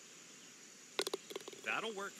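A golf putter taps a ball.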